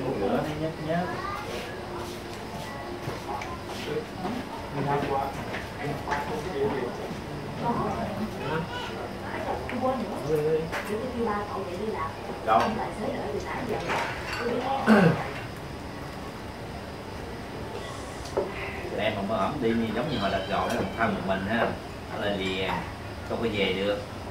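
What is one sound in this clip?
Several men talk and laugh nearby with animation.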